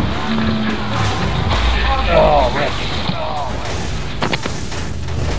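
A car crashes with a loud metallic impact.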